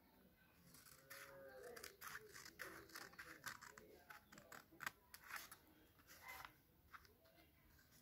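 Scissors snip through paper.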